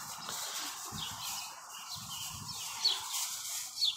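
Paper crinkles as it is crumpled.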